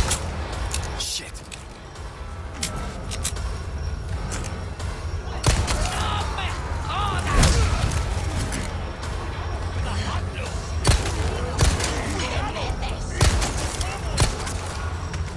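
Gunshots ring out sharply, one at a time.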